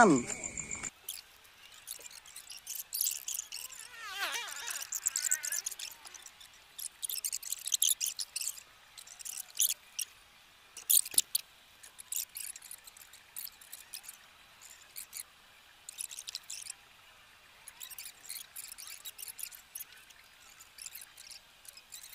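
Pruning shears snip at small branches.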